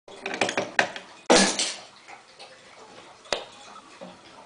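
Wooden toy trains clatter and knock on a table.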